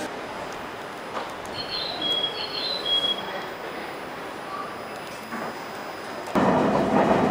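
A train idles at a platform with a low hum.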